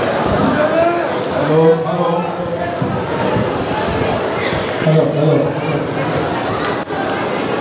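A crowd murmurs and shouts.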